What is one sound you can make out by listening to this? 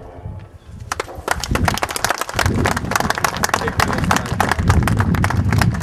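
A crowd claps hands steadily.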